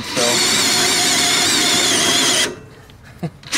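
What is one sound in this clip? A cordless drill whirs at high speed.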